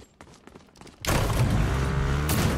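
A motorbike engine revs loudly.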